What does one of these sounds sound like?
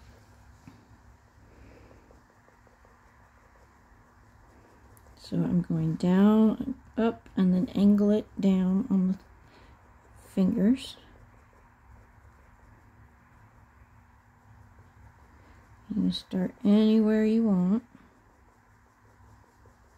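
A pencil scratches softly on a small hard figure.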